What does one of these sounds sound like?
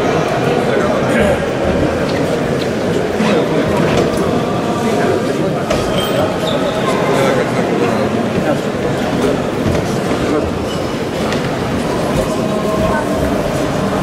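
Many voices murmur and chant in a large echoing hall.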